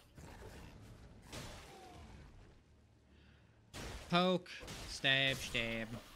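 A sword swings and strikes with sharp slashes.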